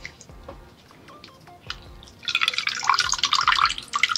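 Fingers swirl and splash water in a bowl close by.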